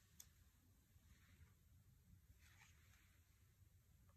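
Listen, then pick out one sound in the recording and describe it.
Cards rustle and slide as hands pick them up.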